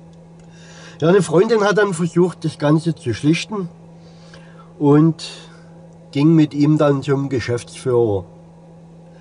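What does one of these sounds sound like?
An older man talks calmly close by.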